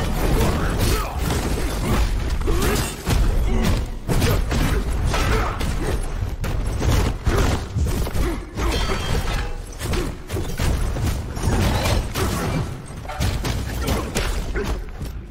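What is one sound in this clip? Heavy blows land with loud booming thuds.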